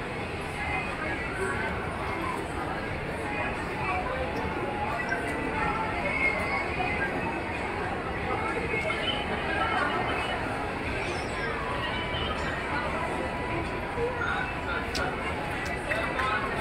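A large crowd of children chatters throughout a big echoing hall.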